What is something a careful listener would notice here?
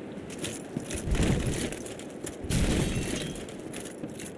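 Heavy stone rubble crashes down with a deep rumble.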